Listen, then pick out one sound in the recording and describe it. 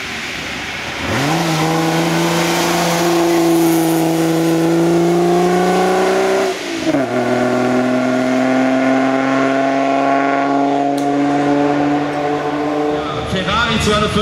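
A racing car engine roars loudly, growing closer, then dropping in pitch as the car passes and drives away.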